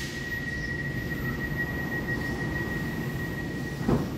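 Train doors slide shut with a thud.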